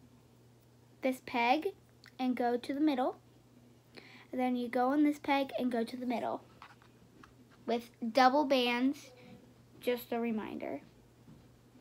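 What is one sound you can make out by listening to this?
A young girl talks close to the microphone with animation.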